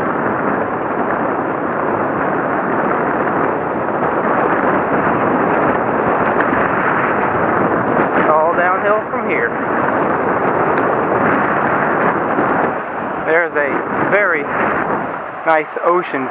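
Wind roars loudly past a moving motorcycle.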